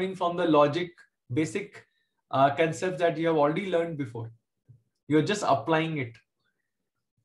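A man speaks calmly and explains through a microphone.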